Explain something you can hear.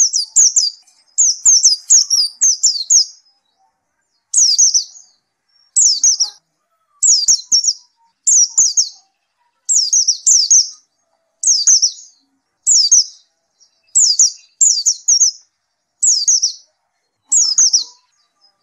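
A small bird sings close by in short, high, rapid chirping bursts.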